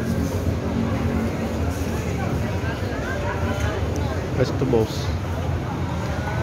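A busy crowd chatters in the background.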